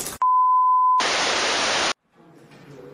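Loud static hisses.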